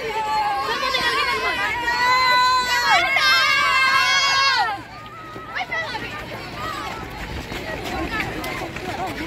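Many feet march on a dirt track.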